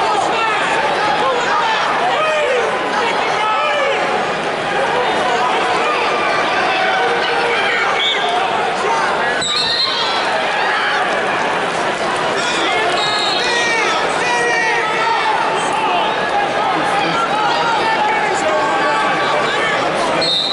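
A large crowd murmurs and calls out in a big echoing arena.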